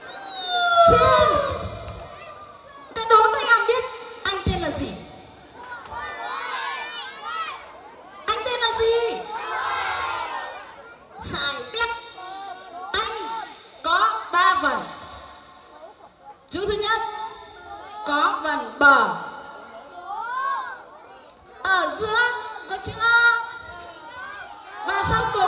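A man sings loudly through a loudspeaker outdoors.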